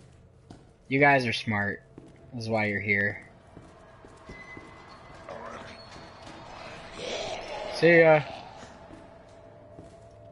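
Footsteps echo along a hard corridor floor.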